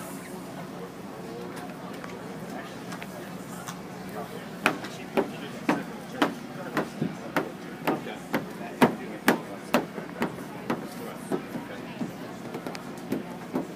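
Gloved hands rub and squeak across a plastic film.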